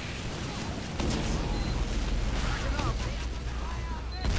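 A flamethrower roars in a steady rushing blast.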